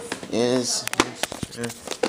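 A plastic tape case clicks and rattles in a hand.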